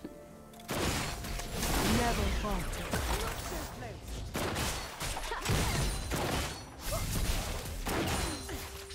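Game spell effects burst and crackle in a chaotic fight.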